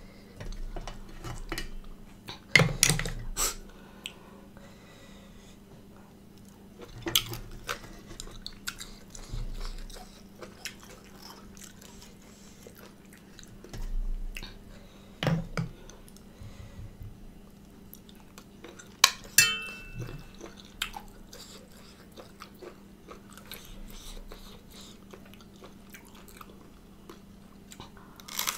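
A woman chews food wetly close to a microphone.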